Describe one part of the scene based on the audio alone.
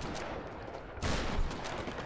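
A gunshot blasts.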